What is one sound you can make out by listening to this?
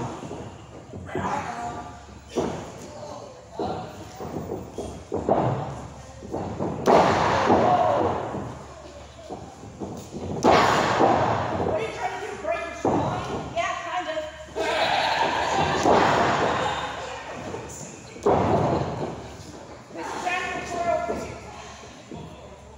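A young woman shouts with effort nearby.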